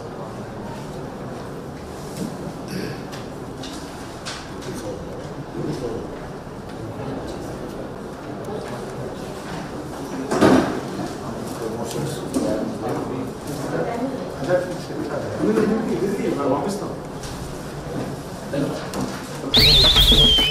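Several men talk over one another in a room with a murmur of voices.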